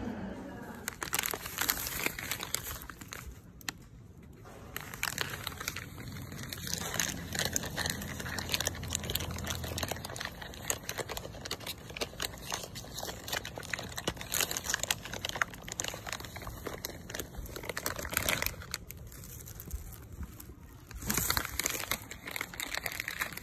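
A plastic wrapper crinkles and rustles in a hand.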